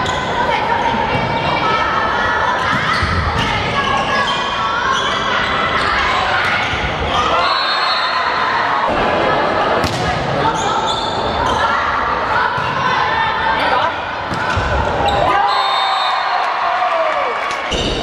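Sneakers squeak sharply on the court floor.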